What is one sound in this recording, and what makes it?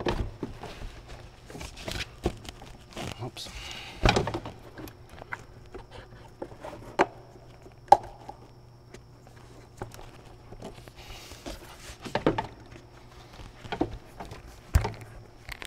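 Plastic engine parts click and knock under a man's hands.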